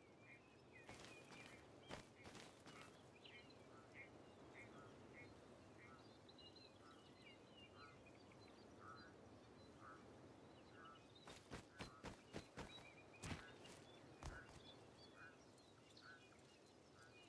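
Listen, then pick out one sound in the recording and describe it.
Footsteps crunch steadily on dry, rough ground.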